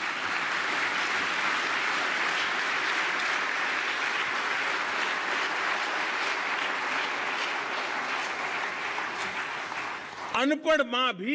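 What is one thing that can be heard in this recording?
A large audience applauds steadily.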